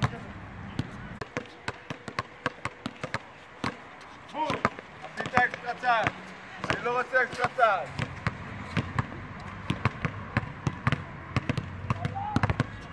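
A basketball bounces repeatedly on an outdoor court.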